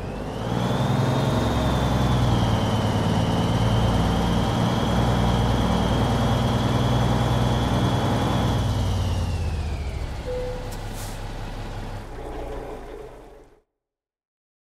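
A truck engine rumbles loudly as it idles and pulls in slowly.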